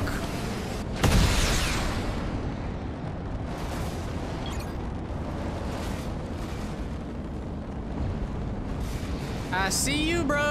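Wind rushes loudly past a gliding figure.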